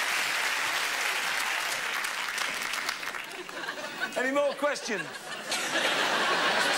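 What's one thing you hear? A large audience laughs and applauds in a big hall.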